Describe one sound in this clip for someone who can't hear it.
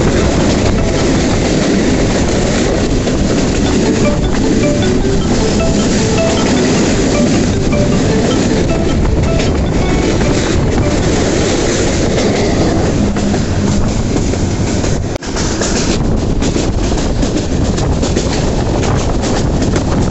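Wind rushes loudly past an open window.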